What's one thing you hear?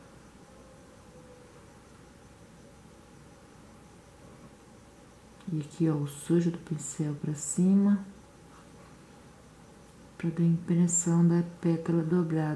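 A paintbrush strokes softly across cloth.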